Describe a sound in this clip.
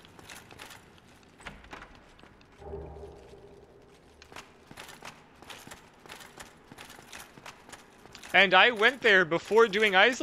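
Armoured footsteps clank steadily on a stone floor.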